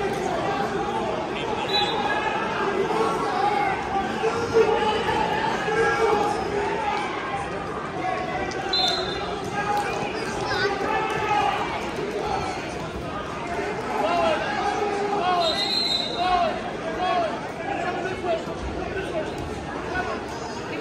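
A crowd of spectators chatters and shouts in a large echoing gym.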